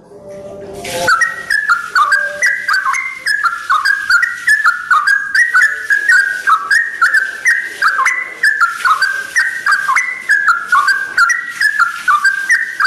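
A yellow-vented bulbul sings a rapid, bubbling run of short notes.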